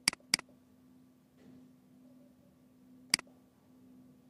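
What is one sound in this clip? A computer mouse clicks sharply a few times.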